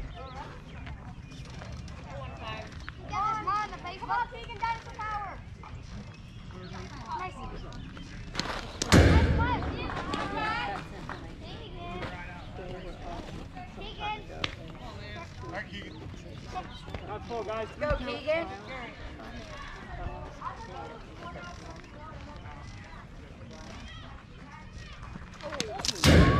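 Young players and onlookers call out and chatter across an open field.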